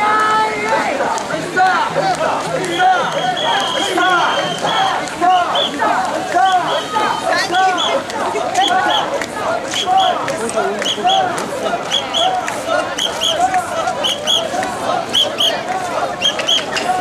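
Men carrying a portable shrine chant together in rhythm.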